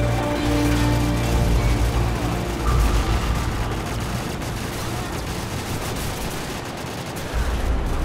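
A helicopter's rotor thumps and roars nearby.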